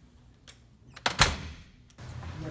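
A door thuds shut.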